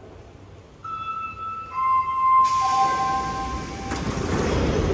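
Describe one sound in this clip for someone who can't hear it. A door warning chime plays a descending series of tones.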